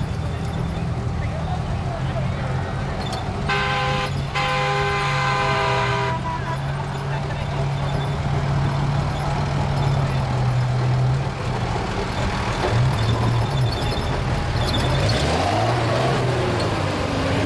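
A truck's diesel engine rumbles and revs nearby as the truck drives past.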